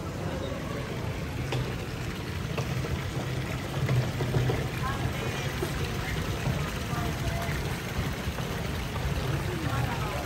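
Water splashes steadily from spouts into a fountain basin.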